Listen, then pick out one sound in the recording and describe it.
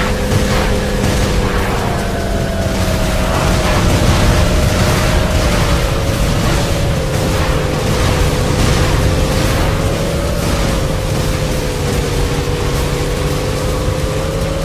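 A futuristic motorbike engine hums steadily at high speed.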